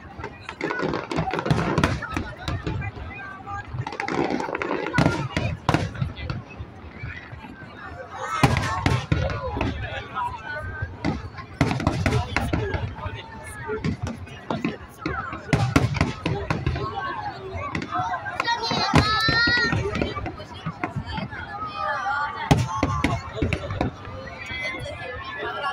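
A crowd of people talks and cheers nearby.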